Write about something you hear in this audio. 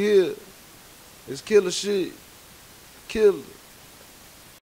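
A young man speaks in short bursts, close by.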